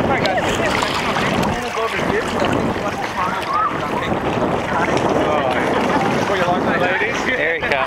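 Several men and women talk and call out over each other nearby, outdoors.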